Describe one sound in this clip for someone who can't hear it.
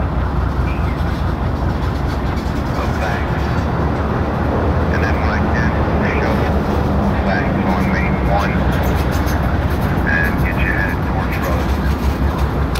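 Steel wheels squeal and screech against the rails.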